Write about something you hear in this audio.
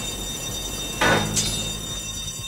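A metal gate bursts open with a loud bang.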